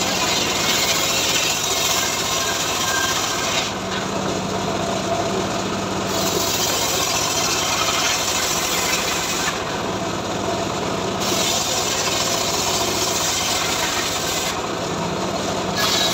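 A saw blade whines as it cuts through wood.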